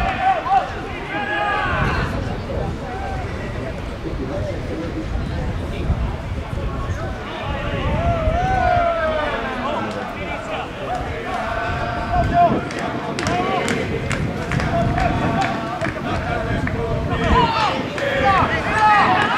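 Young men shout to each other across an open field, some way off.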